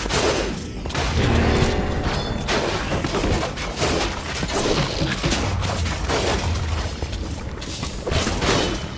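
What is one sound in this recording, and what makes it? Explosions and magic blasts burst rapidly in a video game battle.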